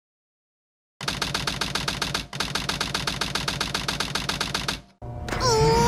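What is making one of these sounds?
Rapid electronic beeps tick as text types out.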